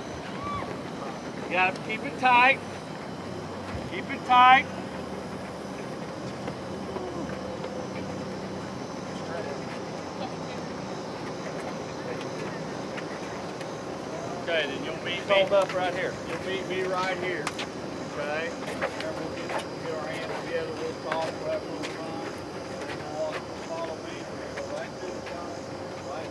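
Young men chatter in a group.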